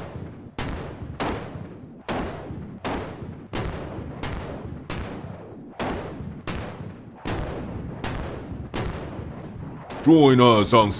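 Explosions boom one after another, each fading with a ringing tail.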